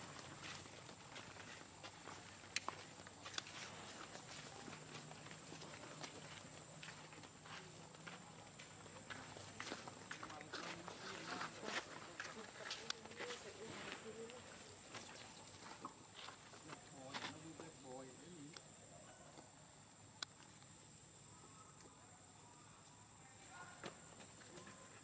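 Dry leaves rustle and crackle under monkeys' feet.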